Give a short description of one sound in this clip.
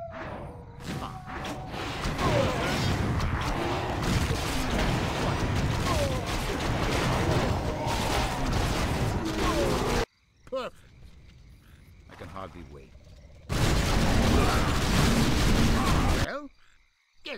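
Weapons clash and spells burst in a noisy battle.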